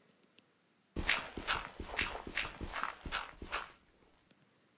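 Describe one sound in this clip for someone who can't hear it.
Blocky digging sounds crunch quickly in dirt in a video game.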